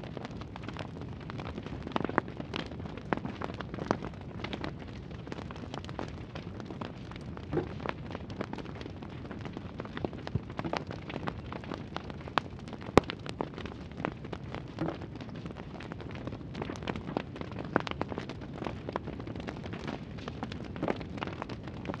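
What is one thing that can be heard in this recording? Small pieces click softly into place.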